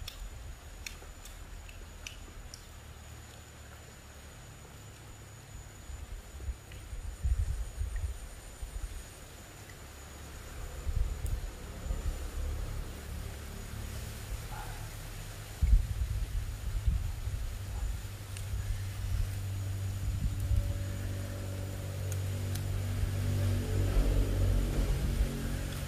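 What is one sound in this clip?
A small fire crackles faintly.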